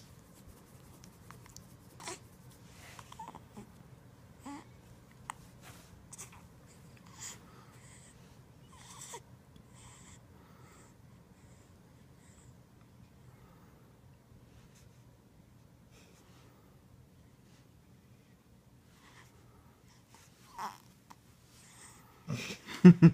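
A baby makes soft cooing and sucking sounds close by.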